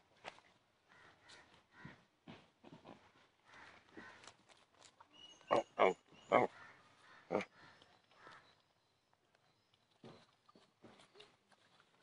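Dry leaves crunch and rustle as pigs root through them.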